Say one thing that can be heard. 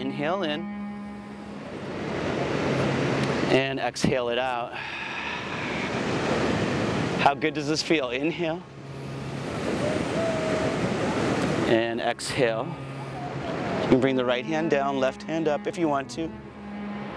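Ocean waves break and wash onto the shore.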